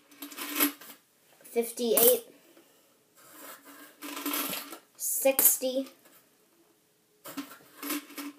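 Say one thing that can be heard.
A young boy talks close to the microphone in short bursts.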